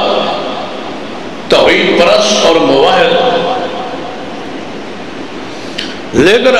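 A man recites loudly and with feeling into a microphone, echoing in a large space.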